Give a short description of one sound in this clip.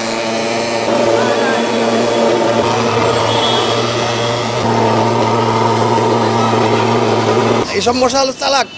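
A fogging machine drones loudly with a steady engine hum.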